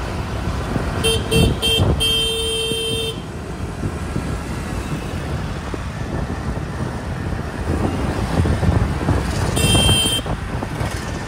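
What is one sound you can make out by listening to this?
Motorbike horns honk in short bursts nearby.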